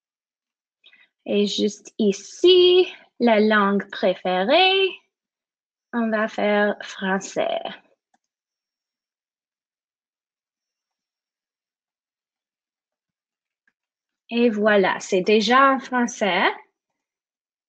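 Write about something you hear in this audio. A young woman speaks calmly into a microphone, heard close up.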